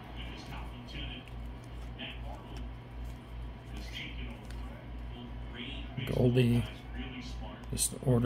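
Trading cards slide and flick against each other as they are shuffled by hand.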